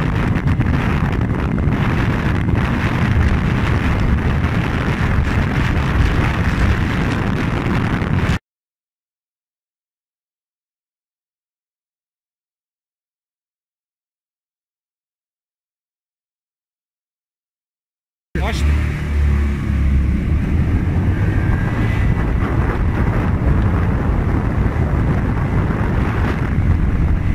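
A small motorcycle engine drones loudly as it rides at speed.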